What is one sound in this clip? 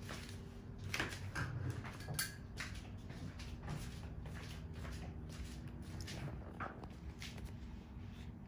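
Handling noises rustle and knock close by.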